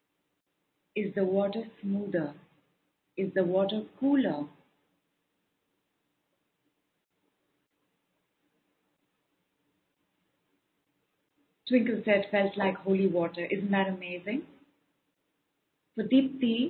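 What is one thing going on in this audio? A woman speaks calmly and warmly over a microphone, heard close.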